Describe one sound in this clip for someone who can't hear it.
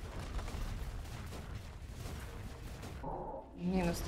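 Fiery magic crackles and whooshes.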